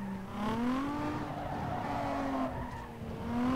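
Tyres squeal as a car slides through a corner.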